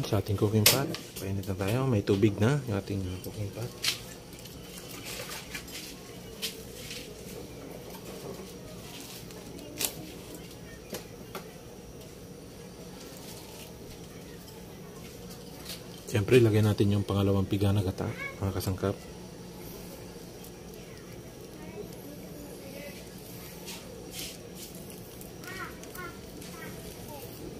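Water in a pot hisses softly as it heats.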